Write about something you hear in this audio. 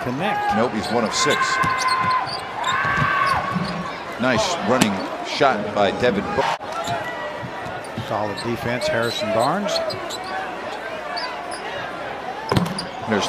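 A large crowd murmurs in an echoing arena.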